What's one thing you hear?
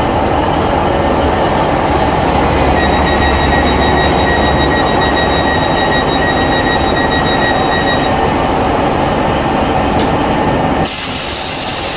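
A passing train rumbles and rattles loudly close by.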